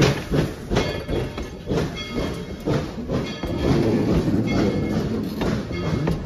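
Passenger cars rumble past on the track.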